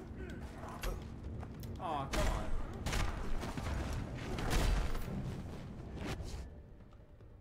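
Punches and heavy thuds land in a fast brawl.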